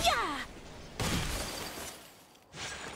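A bright magical whoosh sounds on landing.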